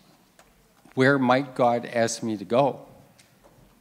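A middle-aged man speaks through a microphone and loudspeakers in a large room.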